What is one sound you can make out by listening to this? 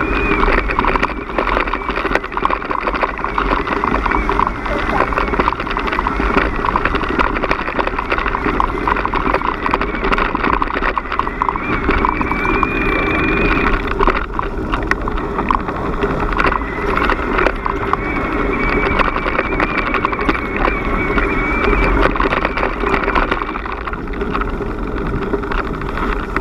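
Bicycle tyres crunch and rattle steadily over a gravel path.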